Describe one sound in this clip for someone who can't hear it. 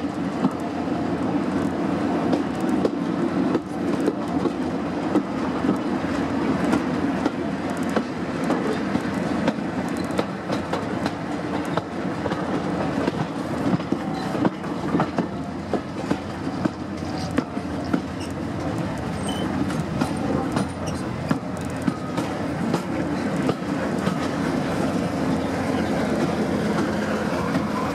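Wheels click and clack over rail joints.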